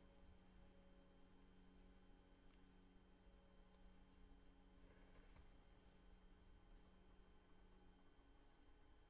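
A piano plays very softly.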